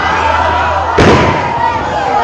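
A wrestler slams onto the ring mat with a loud thud.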